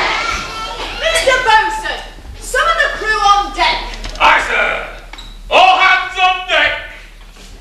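Men speak loudly and theatrically in a large echoing hall.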